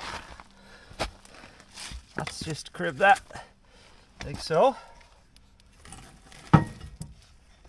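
A metal jack clanks and creaks as it is pumped.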